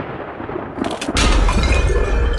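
Glass cracks and shatters with a sharp crash.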